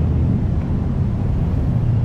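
A motorbike engine passes by.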